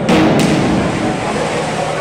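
A diver splashes loudly into water in a large echoing hall.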